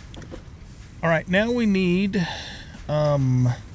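A man speaks loudly with drawn-out, sing-song words into a close microphone.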